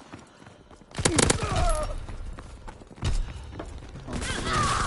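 A rifle fires rapid gunshots.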